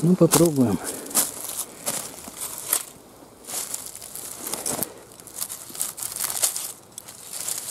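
Dry leaves and twigs rustle and crackle close by.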